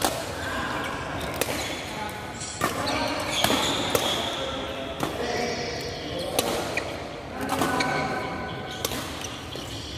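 Shuttlecocks are struck with rackets with sharp pops in a large echoing hall.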